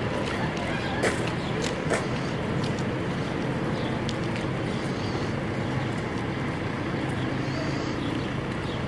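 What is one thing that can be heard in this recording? Footsteps scuff on a dirt road.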